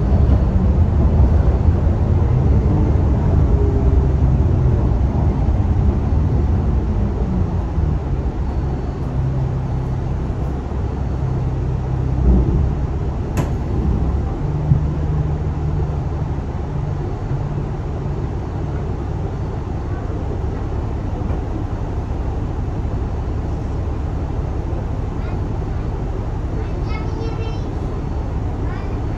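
A bus engine hums and rumbles steadily, heard from inside the bus.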